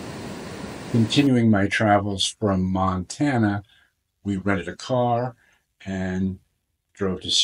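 A middle-aged man speaks calmly close to a microphone.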